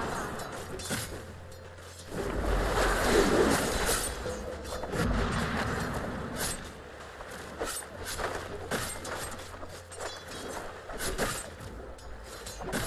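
Weapons clash with sharp metallic hits.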